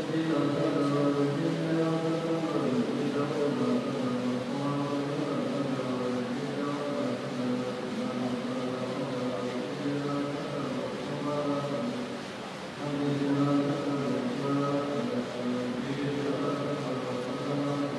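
A group of men chant together in low, steady voices in an echoing hall.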